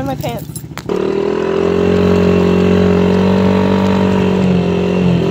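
A dirt bike engine runs at a steady pitch.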